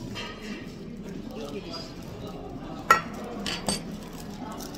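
Metal plates clatter onto a table.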